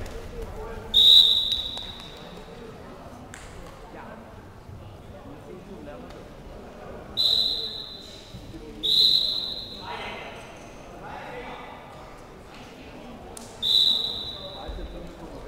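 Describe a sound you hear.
A referee blows sharp whistle blasts in a large hall.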